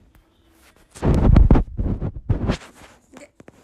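A hand brushes against the microphone with loud rustling thumps.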